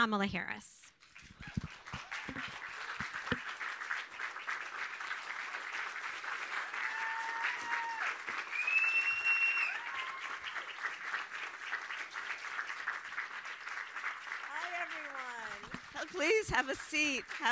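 An audience applauds and cheers loudly.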